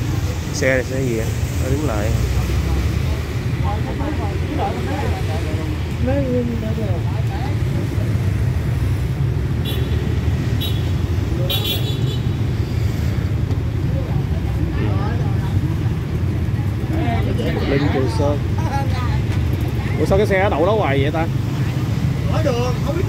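Steady street traffic rumbles outdoors, with motorbikes passing.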